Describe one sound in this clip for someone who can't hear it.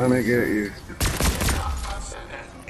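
Rifle shots crack in quick succession.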